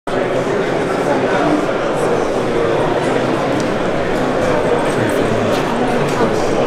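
Many adult men and women chatter together around the listener in a busy, echoing hall.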